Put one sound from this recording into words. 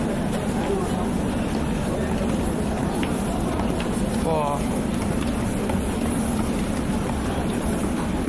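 Footsteps tread down stone stairs.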